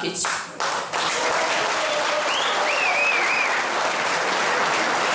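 Applause breaks out and goes on steadily.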